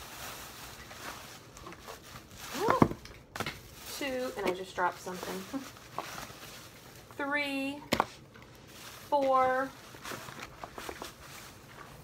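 Plastic wrapping rustles and crinkles as it is handled.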